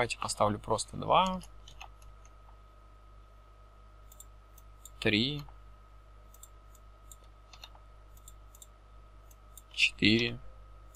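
A young man speaks calmly into a close microphone, in short bursts.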